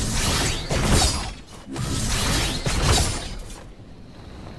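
Wind rushes loudly past while gliding through the air.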